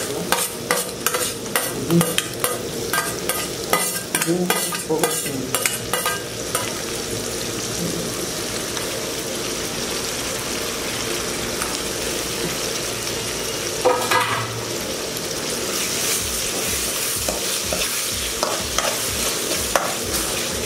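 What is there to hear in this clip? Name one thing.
A spoon scrapes and clinks against a metal pan.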